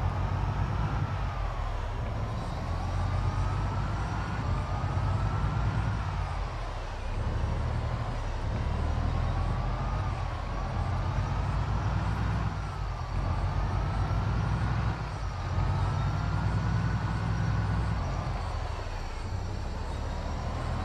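A van engine hums and revs up through the gears, dropping in pitch at each gear change.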